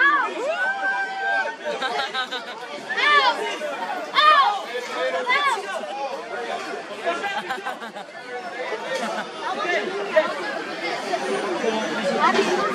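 A crowd of people call out and shout excitedly nearby.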